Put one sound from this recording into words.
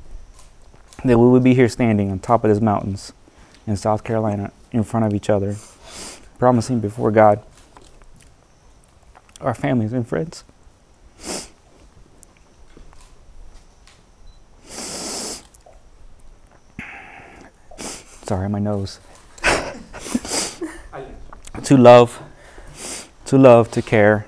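A young man reads out vows with emotion, close by and in phrases with pauses.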